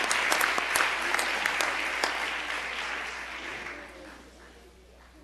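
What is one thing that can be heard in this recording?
Applause rings out in a large echoing hall and fades.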